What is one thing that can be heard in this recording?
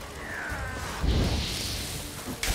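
A fiery blast roars.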